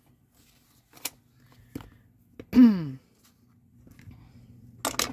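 Small tools tap and click against a tabletop.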